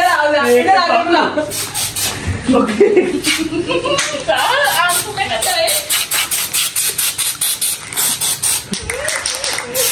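Spray cans hiss in short bursts.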